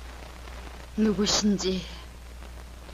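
A middle-aged woman speaks quietly nearby.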